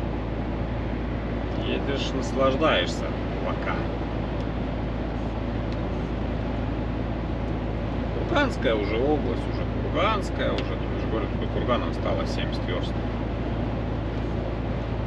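A large vehicle's engine hums steadily while driving.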